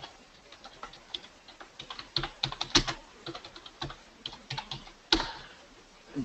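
A keyboard clicks with quick typing.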